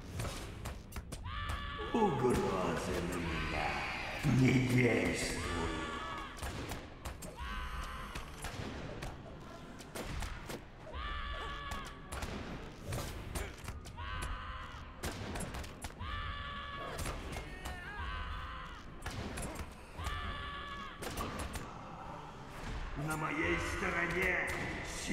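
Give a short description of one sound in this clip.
Weapons strike and clash in a fight.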